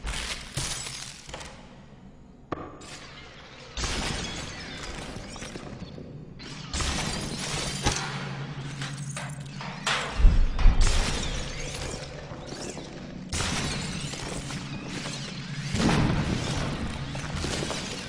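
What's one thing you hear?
Figures shatter with sharp, glassy crashes, again and again.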